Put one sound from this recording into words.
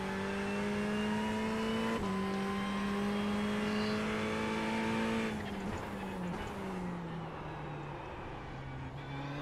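A racing car engine roars at high revs, shifting up with a brief dip in pitch, then drops lower as the car slows into a corner.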